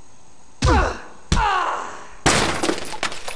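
Heavy blows land with loud, booming thuds.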